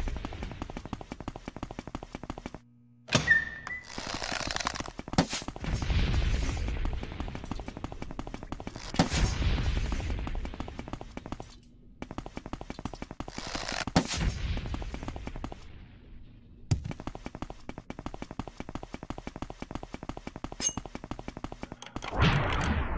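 Footsteps thud quickly on a stone floor.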